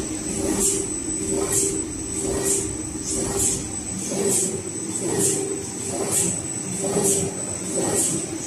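A printing machine hums and clatters with a steady, rhythmic beat.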